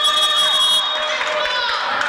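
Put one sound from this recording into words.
A man shouts loudly from the sideline.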